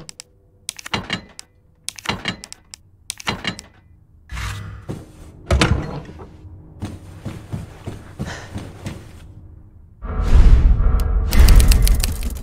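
Menu clicks and beeps sound in quick succession.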